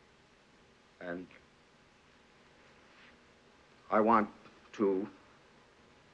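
A man speaks haltingly into a microphone.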